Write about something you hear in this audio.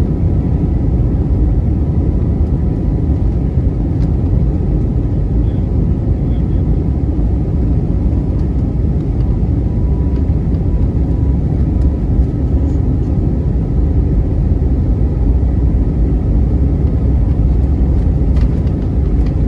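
Jet engines roar loudly and steadily.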